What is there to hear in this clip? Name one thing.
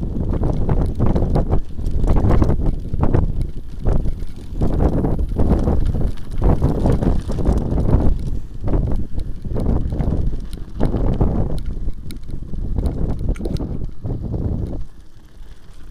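Wind buffets loudly against a moving bicycle.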